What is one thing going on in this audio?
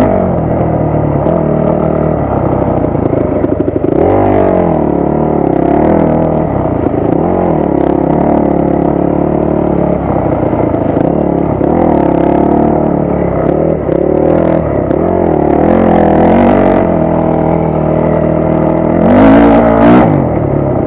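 A dirt bike engine roars close by, revving up and down.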